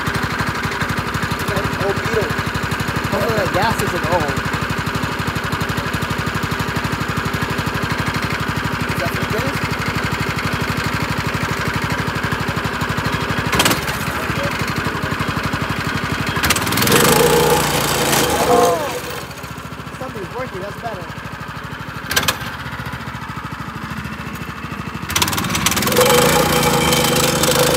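A small gasoline engine runs with a rapid, steady chugging.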